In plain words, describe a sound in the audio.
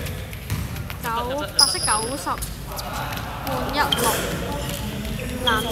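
Sneakers squeak sharply on a hard floor in a large echoing hall.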